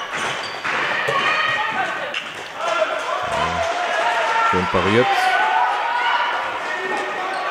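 Sports shoes squeak sharply on a hall floor.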